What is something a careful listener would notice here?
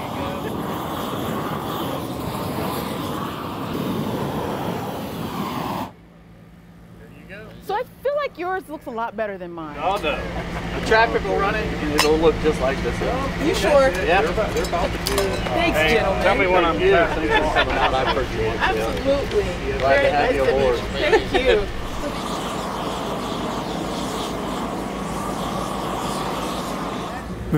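A paint sprayer hisses steadily.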